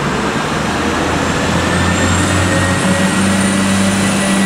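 Train brakes squeal high as the train comes to a stop.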